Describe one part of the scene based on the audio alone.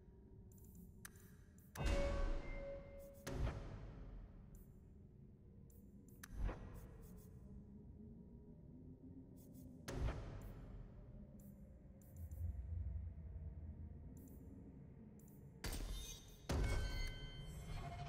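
Menu sounds chime and whoosh as menu pages are clicked through.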